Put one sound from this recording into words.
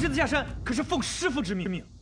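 A young man speaks urgently, up close.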